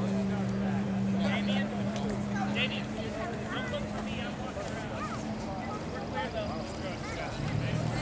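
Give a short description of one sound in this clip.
People chatter nearby outdoors.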